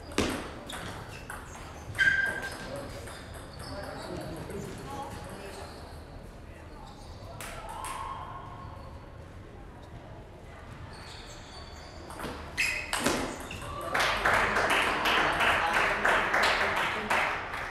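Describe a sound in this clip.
A ping pong ball clicks back and forth off paddles and a table in a large echoing hall.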